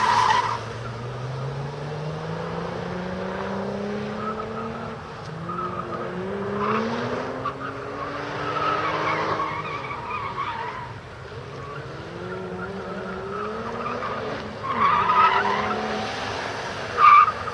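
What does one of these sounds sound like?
A sports car engine revs up and down repeatedly.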